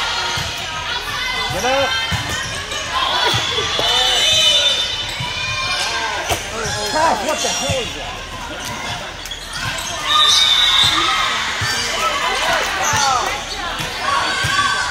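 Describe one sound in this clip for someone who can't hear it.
A volleyball thumps off players' arms and hands.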